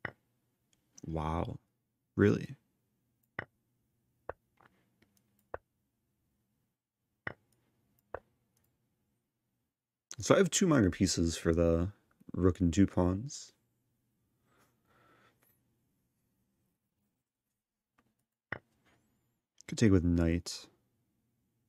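A young man speaks briefly and casually into a nearby microphone.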